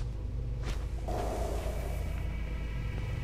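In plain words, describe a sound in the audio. Cloth rustles as a costume is pulled on.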